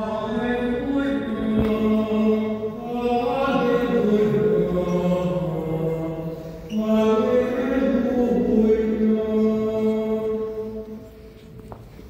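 A man chants in a steady singing voice through a microphone in an echoing room.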